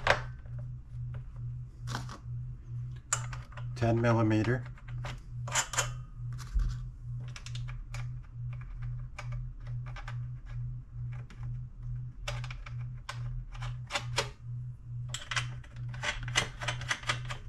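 Small metal parts click and clink as they are handled.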